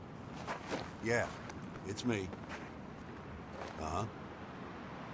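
A man speaks briefly into a phone in short bursts.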